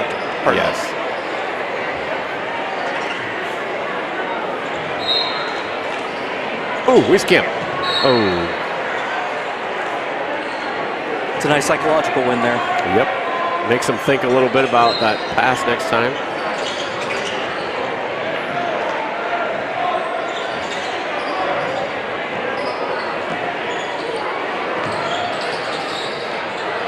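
A crowd murmurs throughout a large echoing gym.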